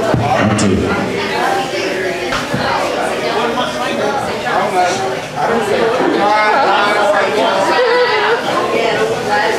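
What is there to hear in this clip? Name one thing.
An elderly man talks nearby.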